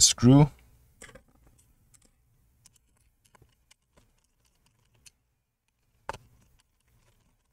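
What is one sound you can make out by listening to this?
A screwdriver clicks and taps on small metal parts.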